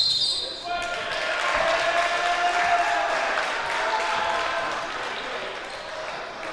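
A crowd in an echoing gym cheers and shouts.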